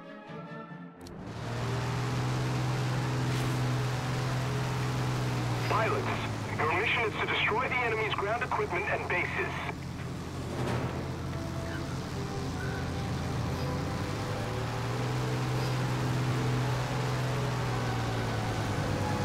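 Aircraft propeller engines drone steadily and loudly.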